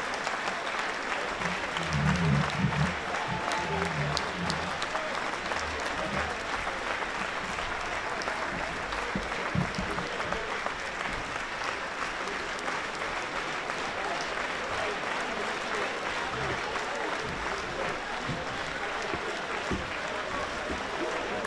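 A large crowd claps steadily in a big echoing hall.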